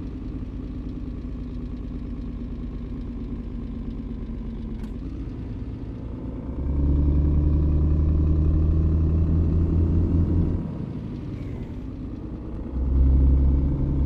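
A heavy diesel truck engine drones at low speed, swelling louder as it pulls harder.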